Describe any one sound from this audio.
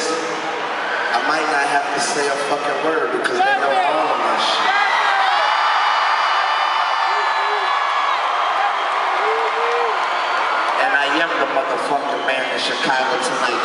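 A man raps loudly into a microphone over a concert sound system.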